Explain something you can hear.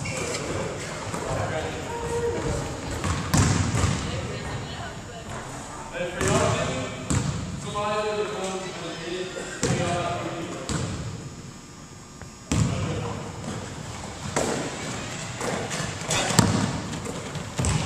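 A basketball bounces on a wooden floor in a large echoing gym.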